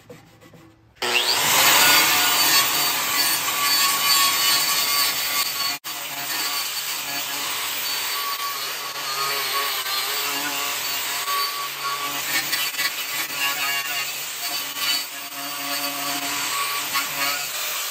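An angle grinder with a wire wheel whines loudly and scours metal.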